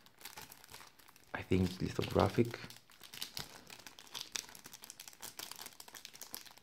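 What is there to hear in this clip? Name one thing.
A plastic sleeve crinkles and rustles as hands handle it.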